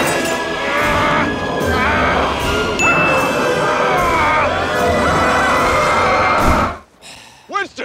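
A large crowd of men shouts and clamours loudly.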